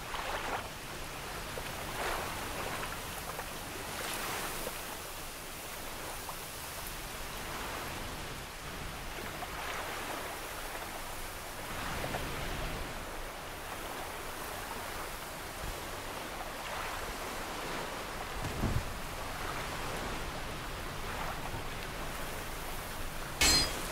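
Armoured footsteps crunch steadily over grass and ground.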